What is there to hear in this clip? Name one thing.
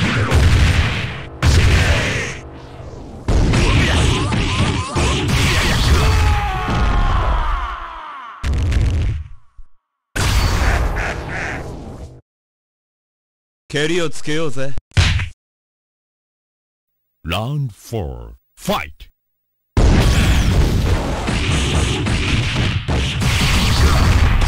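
Energy blasts whoosh and crackle in a video game fight.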